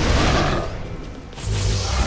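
Fiery blasts whoosh and crackle in a burst of loud bangs.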